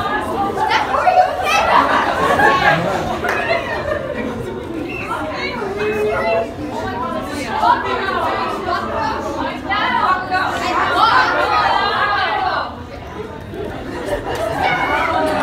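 A crowd of young people laughs and chatters.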